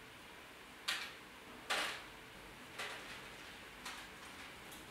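Pliers snap shut with sharp clicks.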